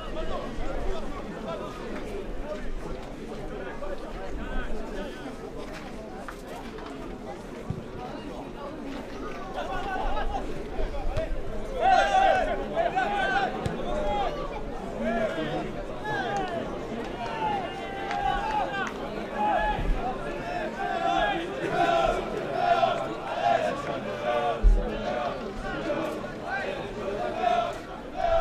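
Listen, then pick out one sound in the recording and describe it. A crowd of spectators murmurs and shouts outdoors.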